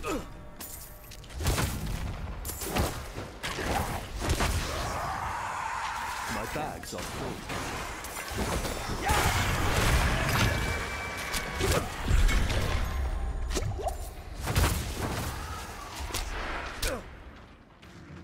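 Fiery blasts roar and crackle during a fight.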